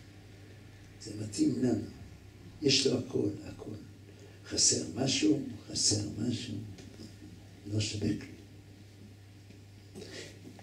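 An elderly man speaks slowly into a microphone, heard through a loudspeaker, with long pauses.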